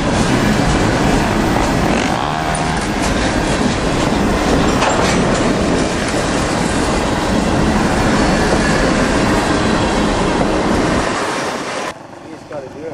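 A freight train rumbles and clanks loudly past up close.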